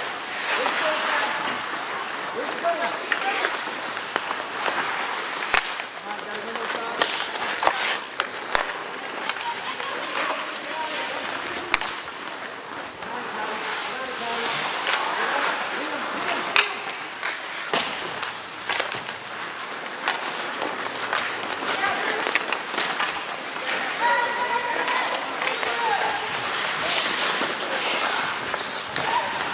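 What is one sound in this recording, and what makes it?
Hockey sticks clack against a puck and against each other.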